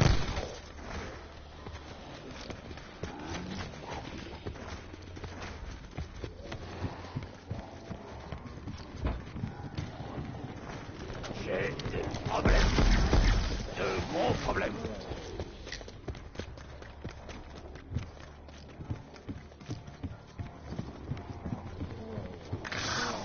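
Gunfire from a game crackles in quick bursts.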